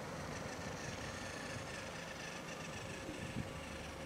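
A toy train motor whirs as it rolls along a plastic track.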